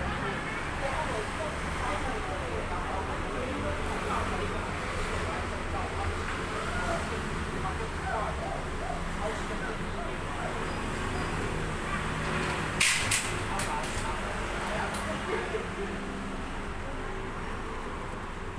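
Traffic hums steadily on a nearby street.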